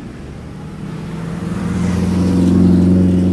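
A large vintage car engine rumbles as the car approaches close by.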